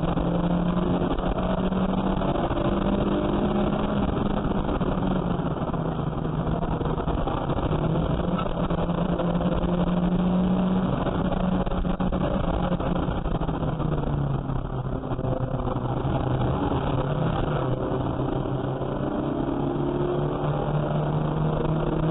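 Wind and road noise rush steadily past the car.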